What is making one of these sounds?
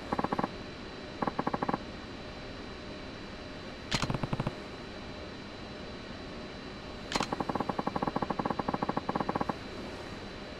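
Quick electronic blips chatter in short bursts.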